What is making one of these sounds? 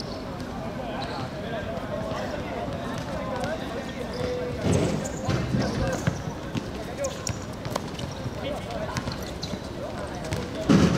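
Young men shout and call out across an outdoor court.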